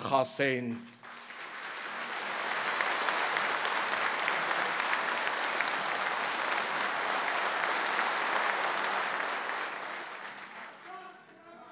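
A large crowd applauds in a big echoing hall.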